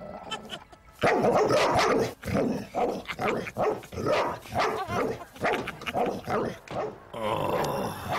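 A dog barks and snarls loudly over and over.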